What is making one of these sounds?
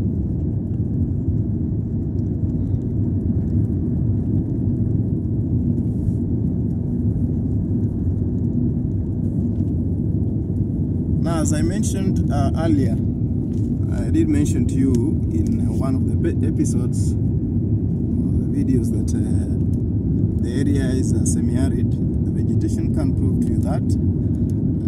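A car engine hums steadily from inside the car, with a low road rumble.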